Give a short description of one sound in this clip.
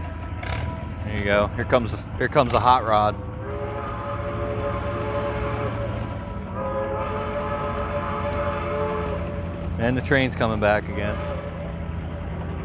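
A tractor engine roars steadily outdoors as it pulls a heavy load.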